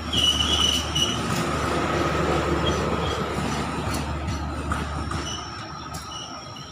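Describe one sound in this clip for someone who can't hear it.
Train wheels squeal against the rails in high, drawn-out tones.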